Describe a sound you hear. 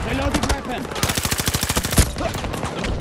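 A rifle fires rapid bursts of gunshots at close range.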